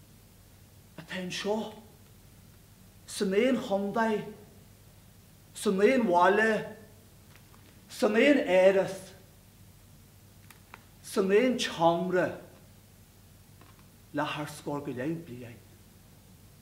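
A man declaims theatrically in short bursts, heard from a distance.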